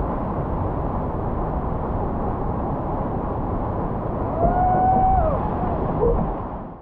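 A waterfall roars and churns loudly close by.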